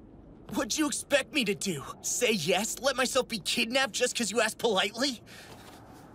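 A young man speaks intensely and urgently, close by.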